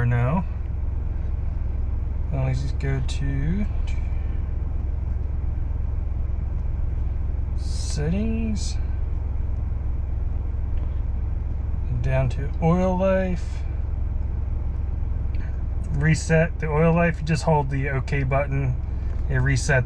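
A car engine idles with a low, steady hum.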